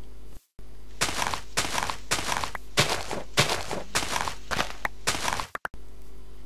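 Blocks of dirt crunch in quick bursts as they are dug out.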